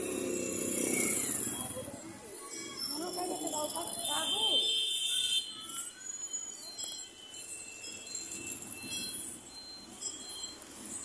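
Traffic rumbles along a busy road outdoors.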